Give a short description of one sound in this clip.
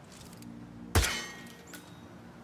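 A rifle fires a single loud shot that rings out.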